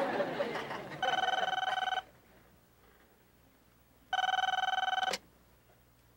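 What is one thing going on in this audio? A telephone rings with a steady electronic trill.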